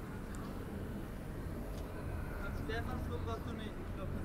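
A car drives slowly past on a street.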